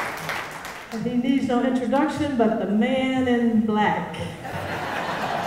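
A middle-aged woman speaks warmly through a microphone.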